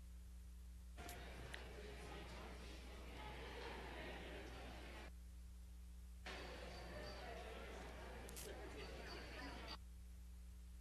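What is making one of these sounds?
Adults chat quietly nearby.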